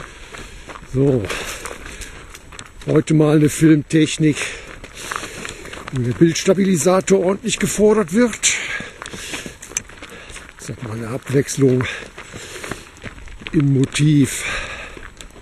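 A man calls out loudly in short bursts close by.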